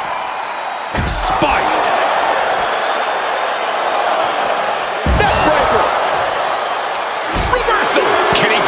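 Bodies slam heavily onto a wrestling ring mat with loud thuds.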